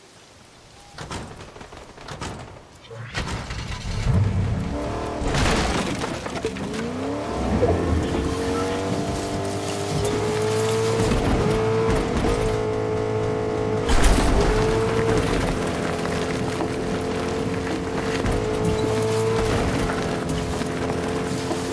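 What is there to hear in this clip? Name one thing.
A car engine hums and revs as it drives.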